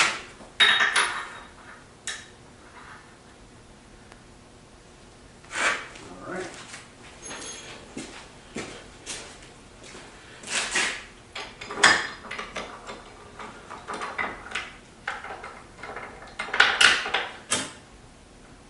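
Metal parts clank and knock against each other.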